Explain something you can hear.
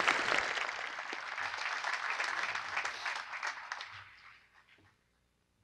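A large crowd applauds outdoors, then the clapping fades.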